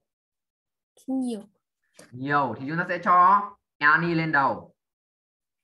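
A teenage boy speaks over an online call, in short bursts.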